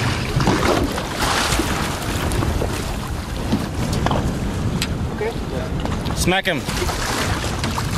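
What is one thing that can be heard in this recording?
A large fish splashes in the water beside a boat.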